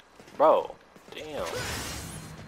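A blade whooshes through the air in a swift slash.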